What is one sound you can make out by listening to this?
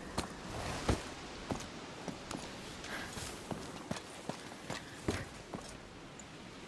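Footsteps crunch and scrape over loose rubble and stone.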